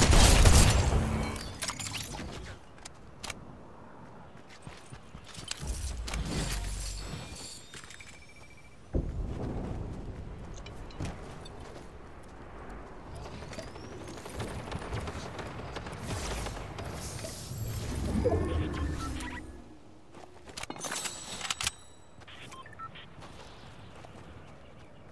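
Quick footsteps patter across grass in a video game.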